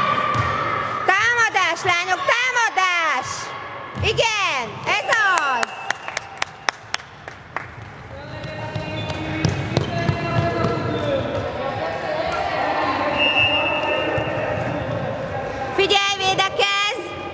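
Sneakers squeak sharply on a wooden floor in an echoing hall.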